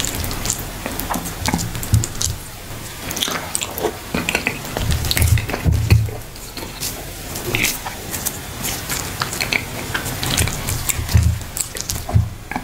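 Fingers squish and scoop soft food on a plate.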